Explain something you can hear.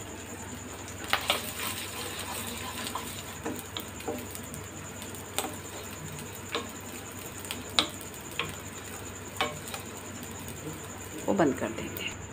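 A wooden spoon scrapes and stirs dry rice grains in a pan.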